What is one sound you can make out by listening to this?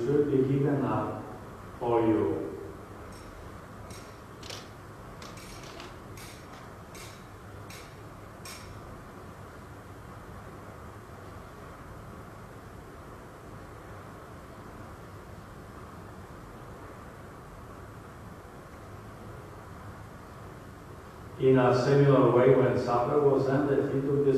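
A man speaks slowly through a microphone in a large, echoing room.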